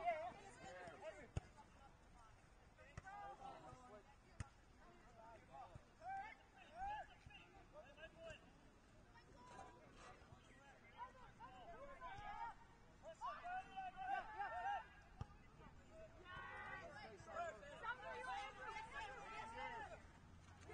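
Players shout to each other across an open field, at a distance.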